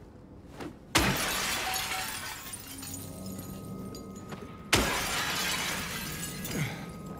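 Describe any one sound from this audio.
Window glass shatters loudly under a heavy blow.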